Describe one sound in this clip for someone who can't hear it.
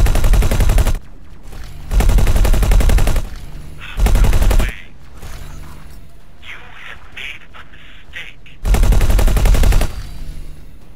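Laser cannons fire in loud, roaring bursts.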